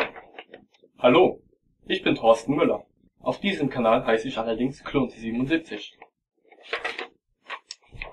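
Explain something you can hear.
A young man speaks close to the microphone, reading out in a casual voice.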